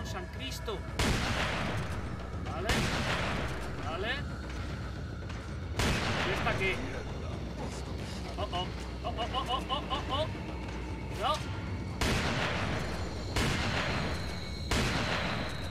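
Shotgun blasts boom loudly, one after another, and echo.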